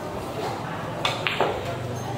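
A cue stick strikes a ball with a sharp click.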